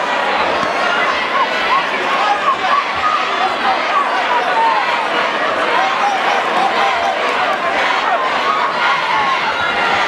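Boxing gloves thud against a fighter's body and gloves.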